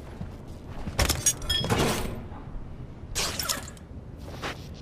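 A hard case clatters as it is picked up and moved.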